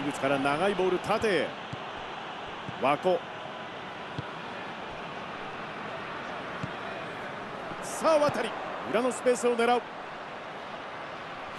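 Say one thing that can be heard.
A stadium crowd murmurs and roars steadily in the background.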